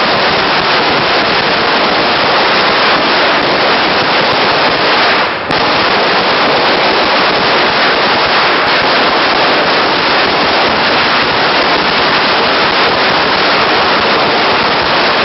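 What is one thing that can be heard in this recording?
Firecrackers crackle and pop rapidly and loudly outdoors.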